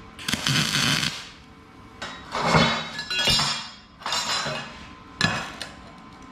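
An electric welder crackles and sizzles in short bursts.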